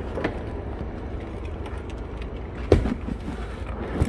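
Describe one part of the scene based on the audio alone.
A plastic cooler bumps and thuds as it is set down.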